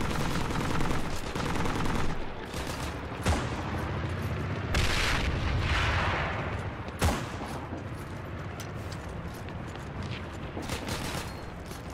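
Footsteps thud on a hard floor and metal stairs.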